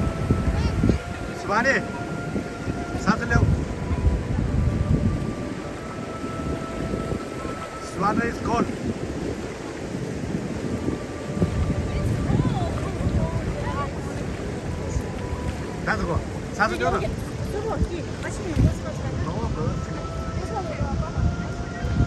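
Shallow waves wash gently over the sand.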